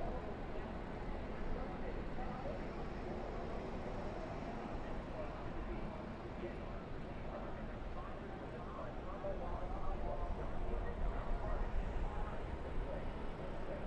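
A race car engine drones at high speed, heard from close by.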